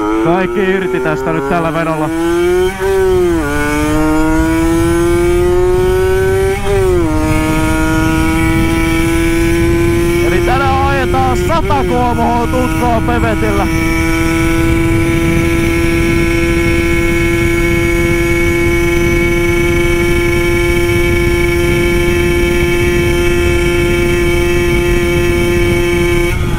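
A small engine revs up in several rising surges, then holds a steady high drone.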